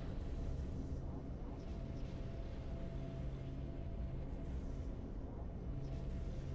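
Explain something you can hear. Triumphant game music plays with a deep, steady drone.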